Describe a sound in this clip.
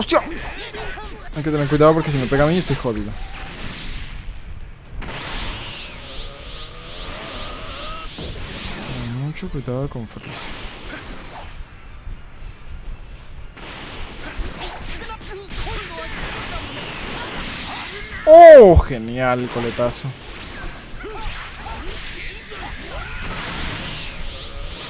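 Energy blasts whoosh and boom.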